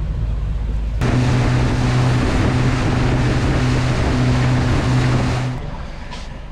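Water rushes and splashes past a moving boat's hull.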